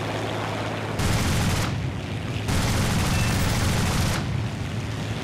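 Machine guns fire in two long rattling bursts.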